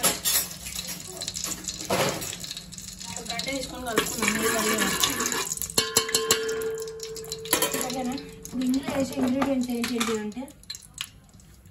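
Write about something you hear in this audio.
Oil sizzles softly in a metal pot.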